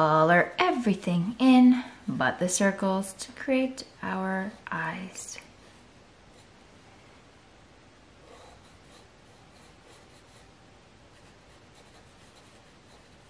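A felt-tip marker squeaks and scratches softly across paper.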